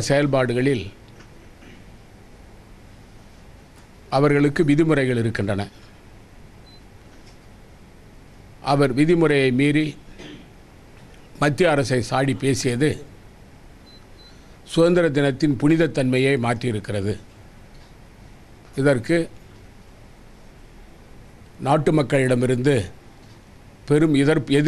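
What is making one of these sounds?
An elderly man speaks calmly into microphones in short bursts with pauses.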